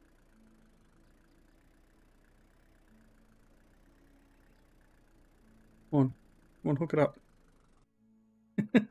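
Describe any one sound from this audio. A truck engine idles with a low, steady hum.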